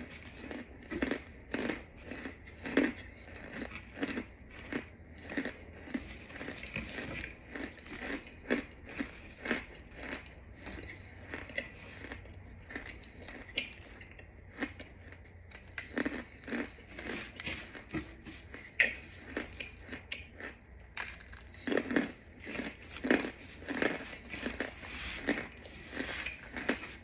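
A rubber-gloved hand crushes chalky blocks close up, with sharp crunches and crumbling.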